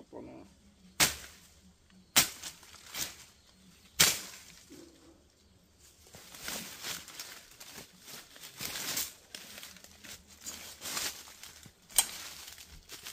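A machete chops sharply into plants.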